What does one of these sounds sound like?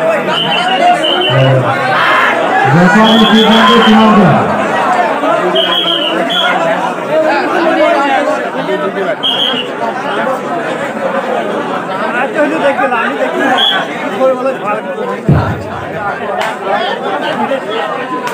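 A man shouts with animation over a loudspeaker.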